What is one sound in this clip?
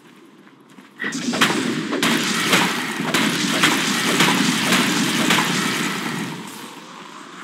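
Spell effects and weapon hits crash and whoosh in a video game fight.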